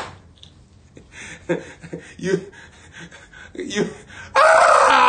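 A young man talks excitedly and laughs.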